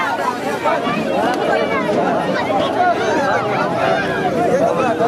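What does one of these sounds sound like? A large crowd of boys and men shouts and cheers excitedly outdoors.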